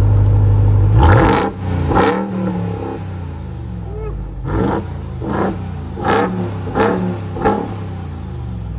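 A truck engine revs loudly in several short bursts.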